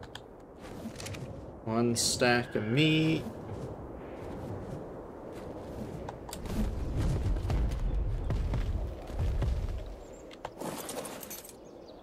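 Large leathery wings beat in the air.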